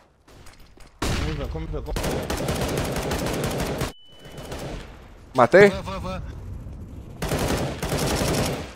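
An assault rifle fires in a video game.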